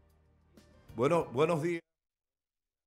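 A man speaks into a microphone close up, reporting with animation.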